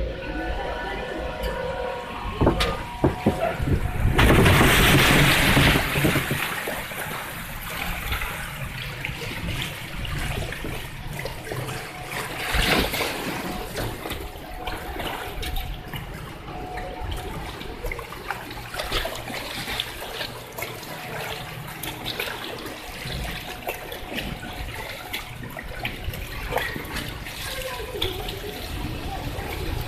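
Water rushes and splashes loudly down a slide.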